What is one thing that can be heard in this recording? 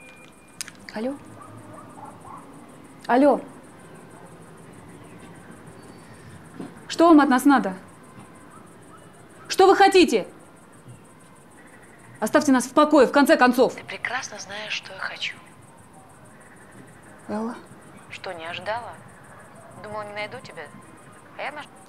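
A young woman speaks softly on a phone, in short, sad phrases.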